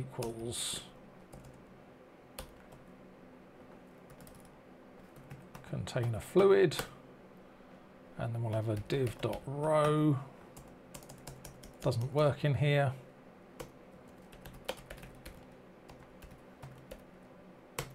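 Keyboard keys click as a man types.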